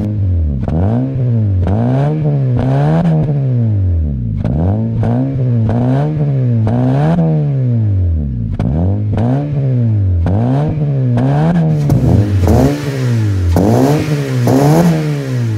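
A car engine revs up and down again and again, roaring loudly through its exhaust.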